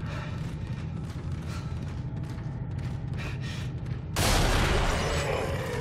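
Heavy boots thud slowly on a hard floor.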